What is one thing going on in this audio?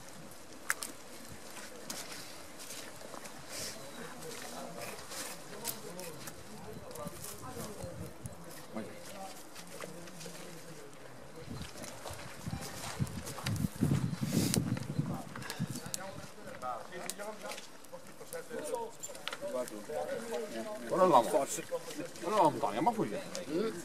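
Men talk outdoors nearby.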